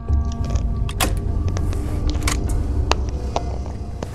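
A button is pressed with a click.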